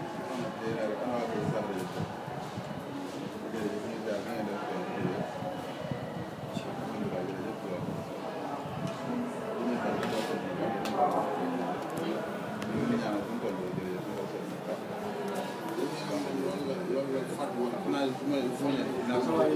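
A man talks on a phone in a calm, low voice, close by.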